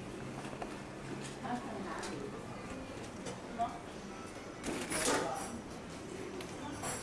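People talk indistinctly in a busy room.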